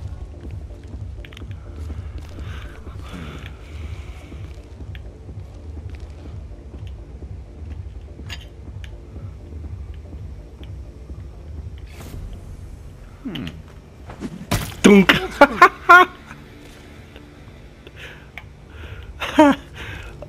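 Footsteps walk slowly on a hard floor.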